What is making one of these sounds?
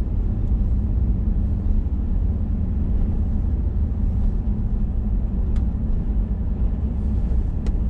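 A car engine rumbles steadily from inside the cab.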